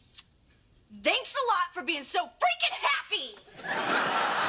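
A young woman speaks loudly with animation.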